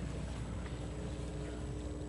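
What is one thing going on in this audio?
A board is wiped with an eraser.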